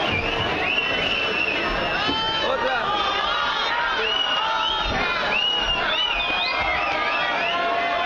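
A crowd of people chatter nearby.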